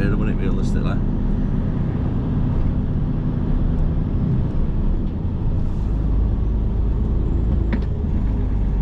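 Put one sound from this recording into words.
A vehicle engine hums steadily as it drives along a road.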